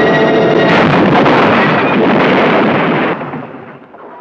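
A car crashes and tumbles down a rocky slope.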